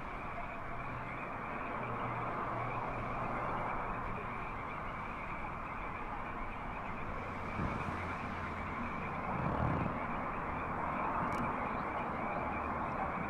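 A film soundtrack plays through a loudspeaker with rumbling music.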